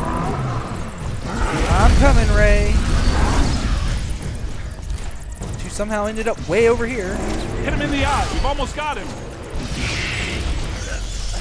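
A deep rumble of explosions booms.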